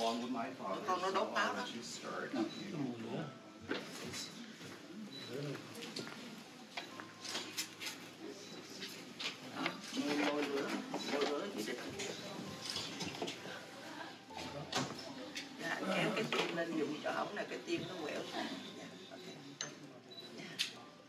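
Several men and women talk quietly nearby.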